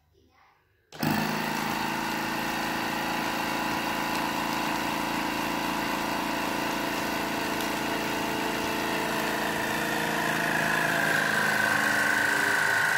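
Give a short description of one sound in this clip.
A vacuum sealer hums and whirs steadily as it sucks air out of a plastic bag.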